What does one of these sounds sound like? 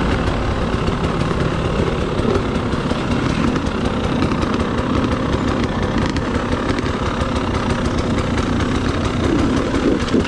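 Tyres crunch and rattle over rocks and dirt.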